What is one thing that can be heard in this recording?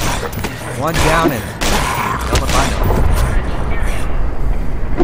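A crowbar strikes flesh with heavy wet thuds.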